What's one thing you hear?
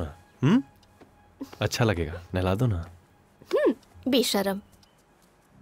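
A young woman speaks with animation, close by.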